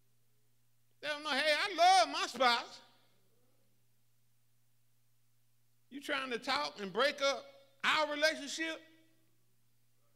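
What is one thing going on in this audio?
An older man speaks with animation into a microphone, pausing between phrases.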